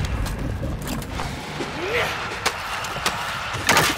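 A blunt weapon thuds into a body.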